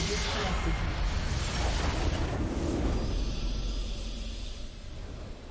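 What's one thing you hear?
A building in a game explodes with a loud, rumbling blast.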